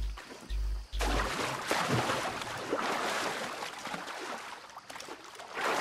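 Water splashes as a person wades through a shallow pool.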